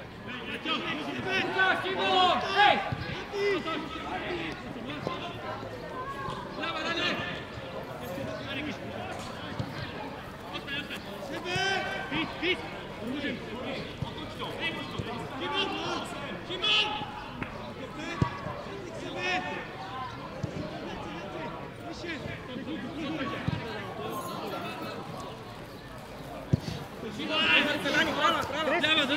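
A football thuds as players kick it on the grass.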